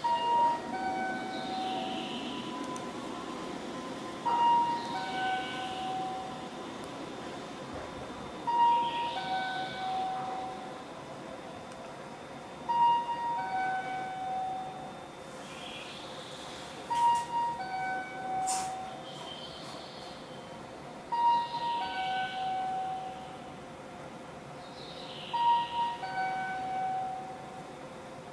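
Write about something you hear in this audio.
A chime from a train rings out over and over.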